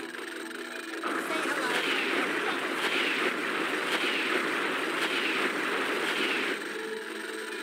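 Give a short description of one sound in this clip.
Bubbles fizz and rush in a loud swirl, with rising whooshes repeating.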